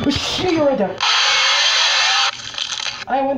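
A harsh electronic screech blares loudly from a game.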